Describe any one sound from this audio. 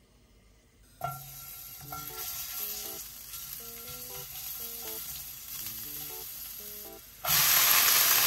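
Butter sizzles softly in a hot pan.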